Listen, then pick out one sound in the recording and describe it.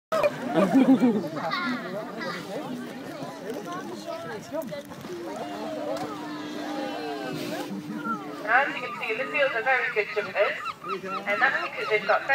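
Children and adults chatter close by outdoors.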